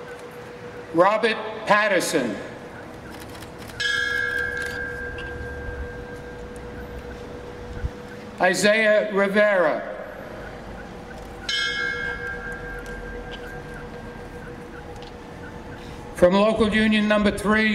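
An elderly man delivers a speech in measured phrases through a microphone.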